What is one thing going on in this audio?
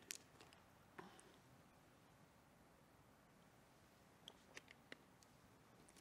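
A plastic water bottle crinkles and clicks near a microphone.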